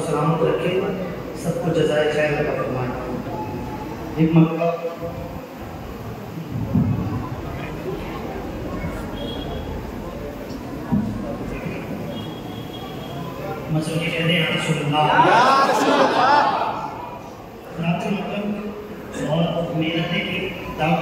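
A young man speaks with feeling into a microphone, heard through loudspeakers in an echoing hall.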